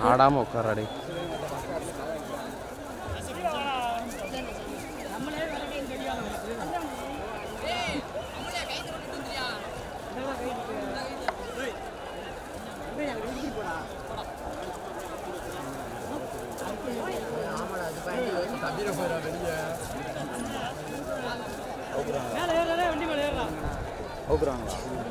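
Men call out nearby, outdoors.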